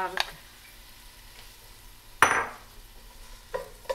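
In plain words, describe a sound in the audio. A wooden spoon knocks and scrapes against a pot.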